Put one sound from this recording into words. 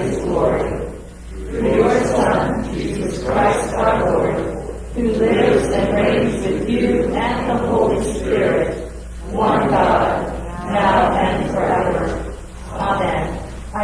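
An elderly man reads aloud steadily in a room with some echo.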